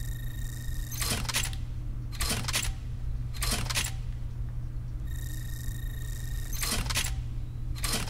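A short electronic chime sounds several times.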